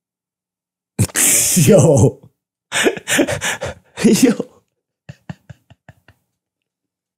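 A young man laughs loudly and heartily close to a microphone.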